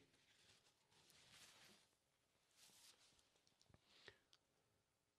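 A young man sniffles and breathes softly near a microphone.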